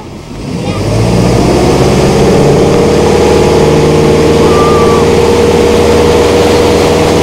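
Water churns and sprays behind a speeding boat.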